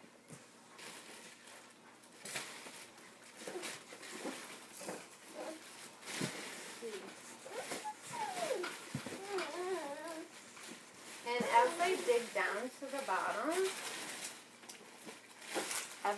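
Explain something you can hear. A woman rummages through a cardboard box, rustling its contents.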